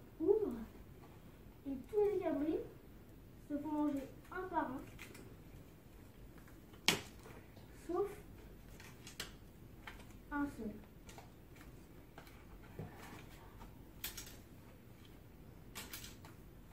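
Paper cutouts rustle and tap as they are handled.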